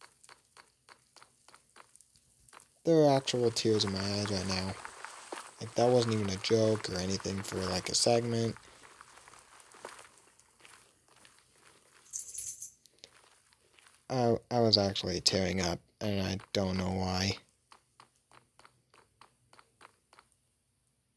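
Footsteps tap on hard stone.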